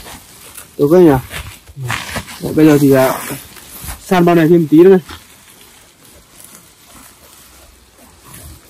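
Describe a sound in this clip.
A plastic sack rustles as it is handled.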